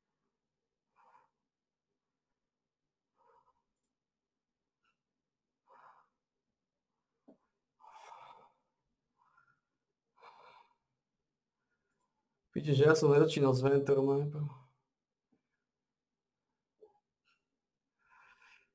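A man speaks quietly in short bursts, close to a microphone.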